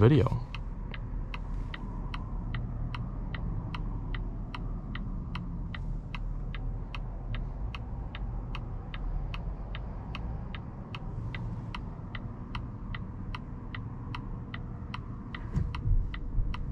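A car engine hums low and steady from inside the cabin.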